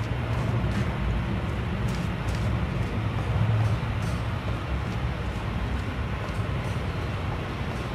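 Footsteps tap on a hard floor and a metal grating.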